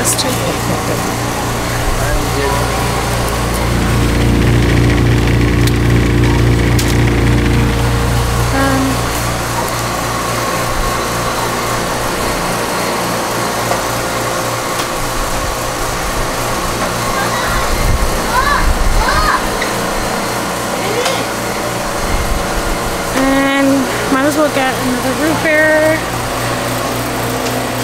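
Refrigerators hum steadily.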